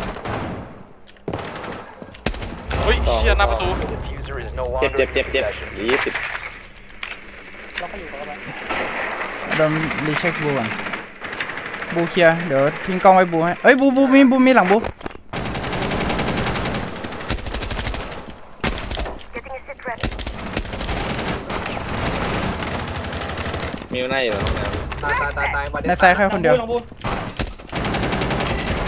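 Gunfire from a video game crackles in quick bursts.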